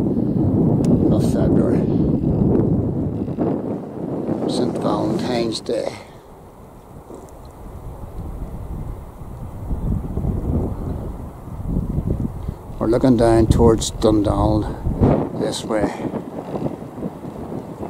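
Wind blows hard and gusts across open ground.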